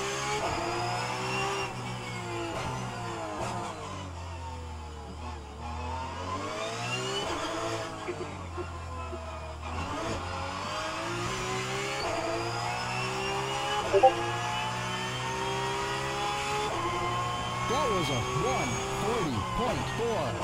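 A racing car engine revs high and drops as the gears shift.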